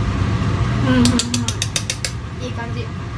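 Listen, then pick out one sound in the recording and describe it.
A young woman claps her hands rapidly.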